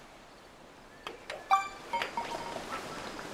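A golf ball drops into the hole with a chime.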